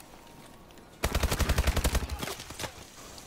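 Rapid gunfire bursts loudly from a rifle.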